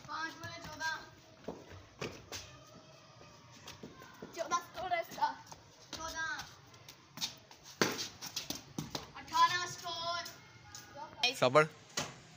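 Footsteps run across a hard rooftop.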